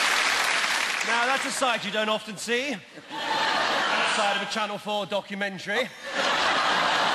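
A man speaks loudly and theatrically through a microphone.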